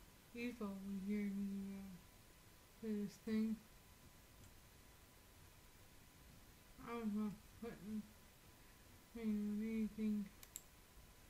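An older woman talks calmly through a microphone.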